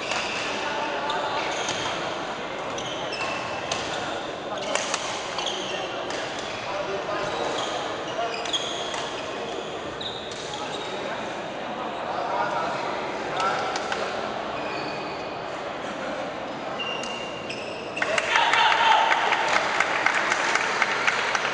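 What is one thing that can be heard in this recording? A crowd of people chatter throughout.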